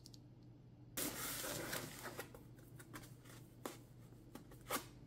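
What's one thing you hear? A plastic cover rustles and crinkles as hands handle it.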